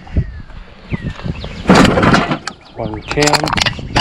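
Aluminium cans rattle and clatter.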